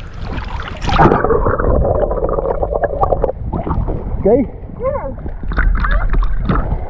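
Water sloshes and splashes around a swimmer.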